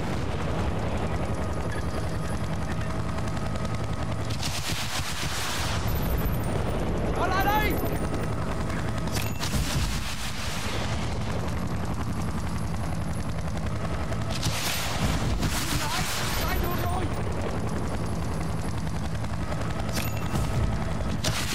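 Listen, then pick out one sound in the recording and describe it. A helicopter's rotor thumps steadily and loudly.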